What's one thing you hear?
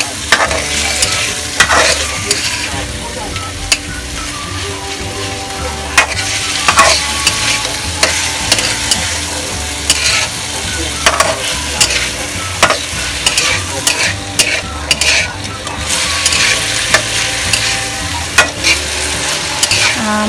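A metal spatula scrapes and clatters against a wok.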